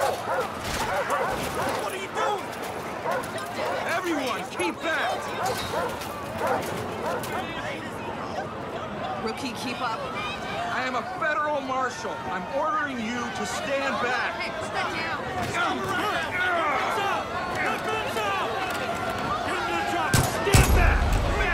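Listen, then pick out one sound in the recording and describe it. A man shouts commands loudly and urgently.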